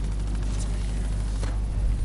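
Electric bolts crackle and zap.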